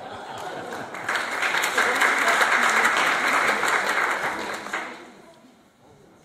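An audience applauds in a large echoing hall, then the clapping dies away.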